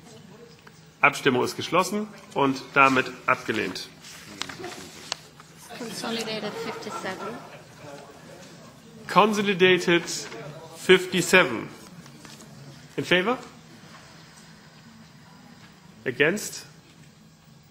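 A man speaks calmly into a microphone in a large room, with pauses between phrases.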